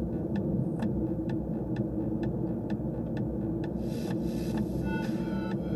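A car drives steadily along a road with a low rumble from inside.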